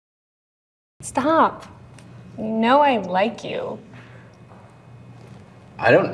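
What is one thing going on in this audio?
A young woman speaks in a lively, amused voice close by.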